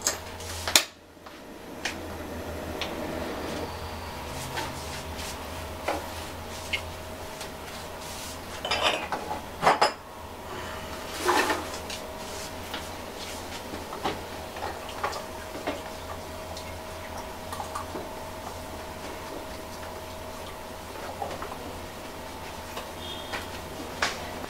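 Kitchenware clinks and knocks as it is handled close by.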